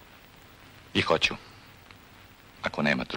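A young man speaks quietly nearby.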